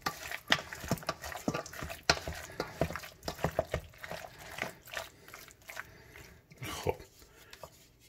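A wooden spoon stirs and scrapes a thick mixture in a metal bowl, with frequent clinks and squelches.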